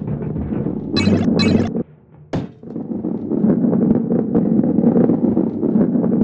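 A heavy ball rolls and rumbles along a wooden track.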